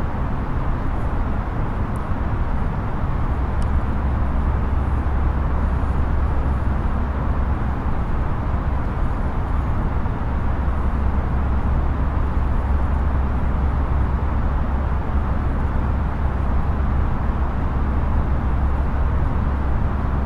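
A jet airliner's engines drone steadily from inside the cockpit.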